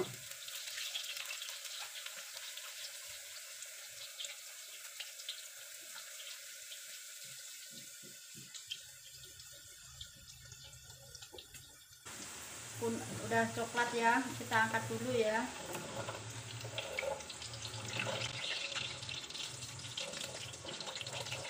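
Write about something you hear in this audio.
A spatula scrapes and taps against a metal pan.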